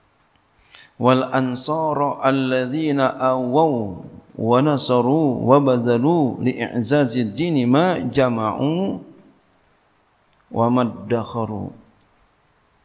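A man speaks slowly and calmly through a microphone, in an echoing hall.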